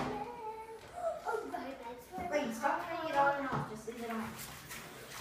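Young children chatter and giggle close by.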